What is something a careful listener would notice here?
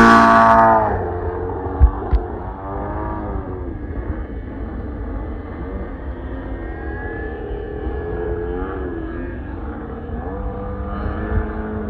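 A model airplane engine drones overhead, its pitch wavering as the plane turns.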